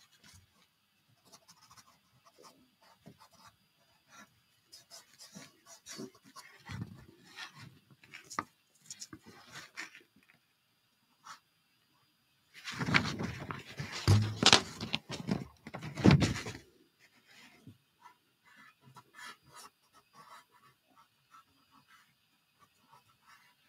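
A dry pastel stick scrapes across paper.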